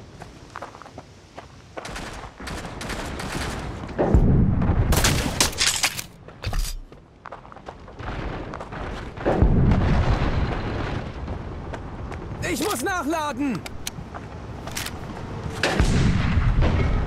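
Footsteps tread steadily over dirt and grass.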